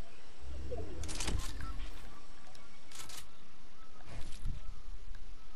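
Building pieces snap into place with sharp clacks.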